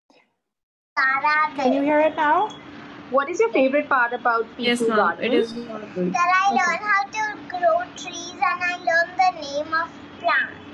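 A young girl speaks with animation through an online call.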